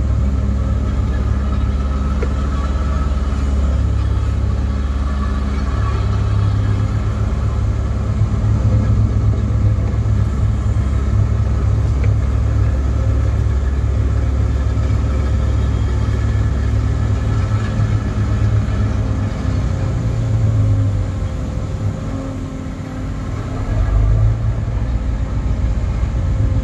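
An excavator's diesel engine rumbles steadily close by, rising and falling as the arm moves.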